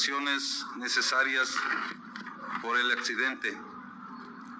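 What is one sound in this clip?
A middle-aged man speaks calmly and formally into a microphone.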